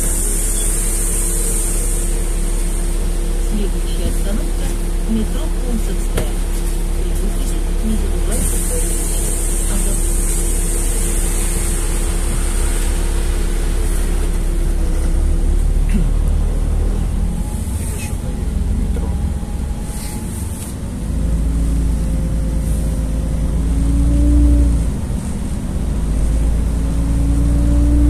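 Tyres hiss on a wet road as traffic passes.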